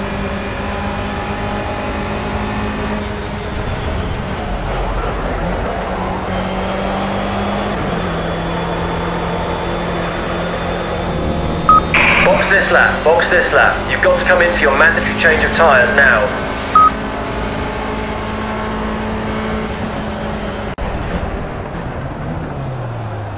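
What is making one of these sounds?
A race car engine drones steadily, shifting pitch as gears change.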